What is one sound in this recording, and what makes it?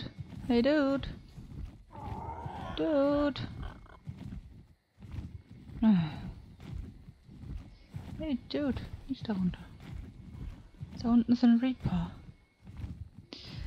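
Large leathery wings flap steadily.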